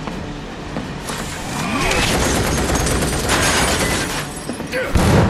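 A gun fires in a rapid burst.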